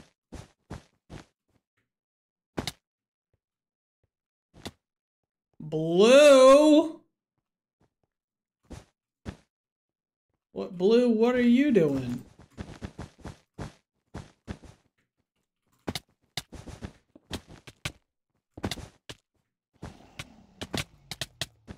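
Blocks are placed with short, quick clicks.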